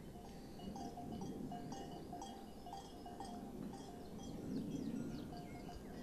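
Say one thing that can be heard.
A metal spoon scrapes and clinks against a bowl.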